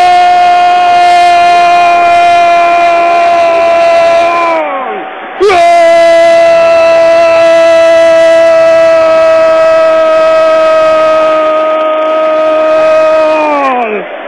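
A man shouts a long, drawn-out cry into a microphone, holding one note and breaking off twice.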